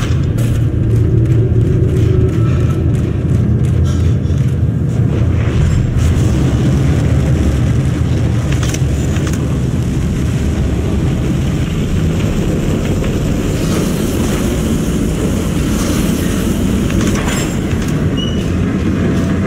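Heavy boots thud and clank on a metal floor.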